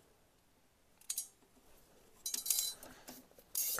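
Plastic wire connectors click and rustle as they are handled up close.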